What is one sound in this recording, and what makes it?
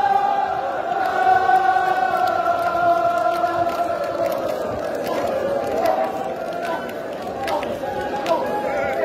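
Men rhythmically beat their chests.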